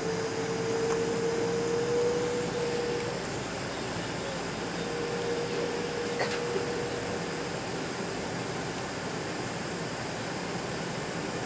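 Jet engines roar steadily from inside an aircraft cabin.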